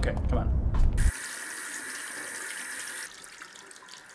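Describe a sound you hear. Beer pours from a bottle and splashes into a sink.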